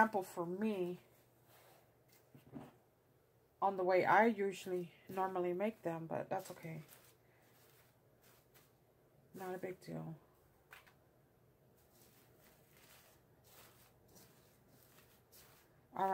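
Tissue paper rustles and crinkles under hands.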